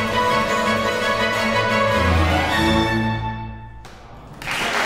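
A harpsichord and strings play a final chord that rings out in an echoing hall.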